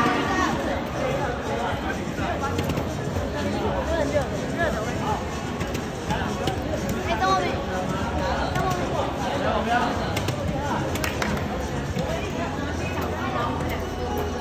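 Darts thud into an electronic dartboard.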